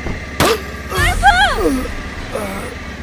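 A young woman cries out in distress close by.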